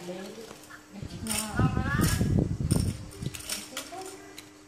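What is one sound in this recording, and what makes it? A toy tambourine jingles and rattles.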